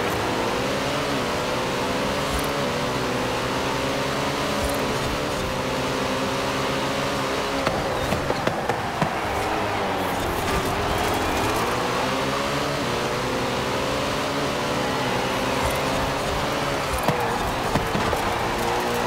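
A race car engine roars loudly, revving up and down through the gears.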